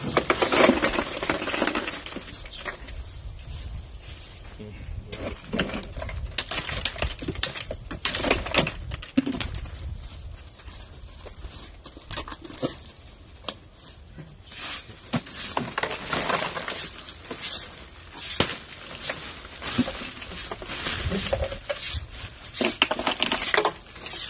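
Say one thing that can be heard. A plastic bag crinkles as it is torn open.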